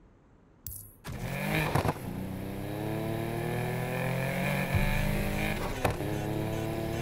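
A car engine revs loudly as it accelerates through the gears.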